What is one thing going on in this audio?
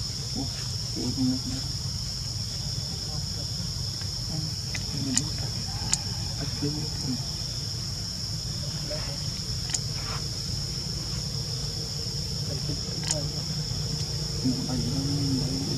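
A baby monkey squeaks softly nearby.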